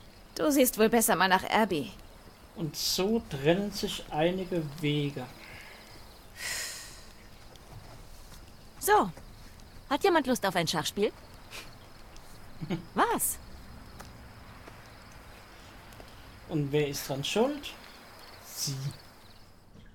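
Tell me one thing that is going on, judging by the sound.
A young woman speaks quietly and tensely.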